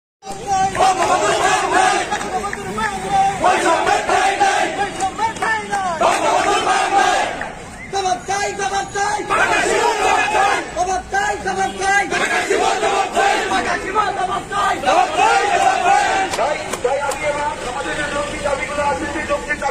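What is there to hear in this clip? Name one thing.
A man speaks loudly and forcefully into a microphone outdoors.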